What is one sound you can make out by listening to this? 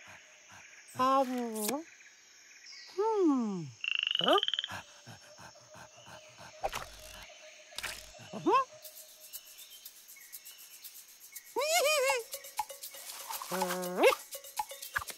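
A small monkey chatters and squeals in a high voice.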